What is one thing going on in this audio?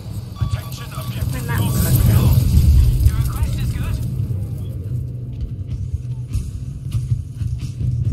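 Artillery shells explode nearby with a deep rumble.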